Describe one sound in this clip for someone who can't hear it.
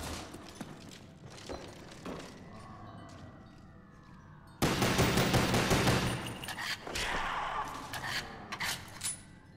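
Pistol shots crack in sharp bursts.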